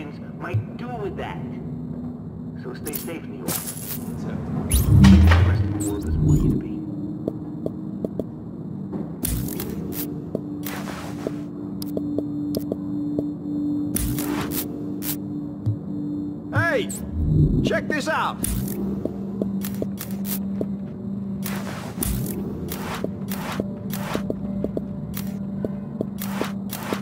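Short interface clicks and swishes sound as menu items are selected.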